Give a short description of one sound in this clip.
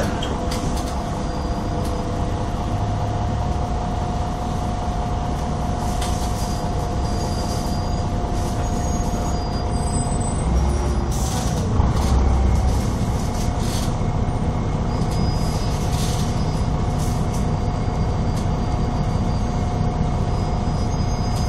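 Traffic rumbles by in the rain.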